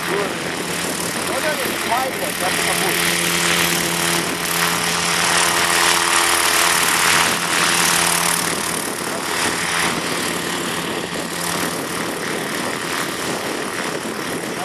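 A small helicopter's engine buzzes steadily close by.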